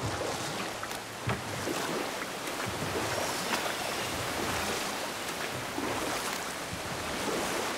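A waterfall roars nearby.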